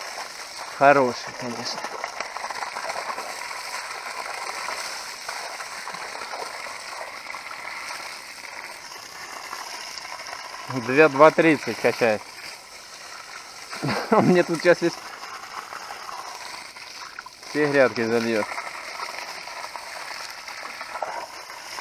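Water gushes from a hose and splashes onto soil.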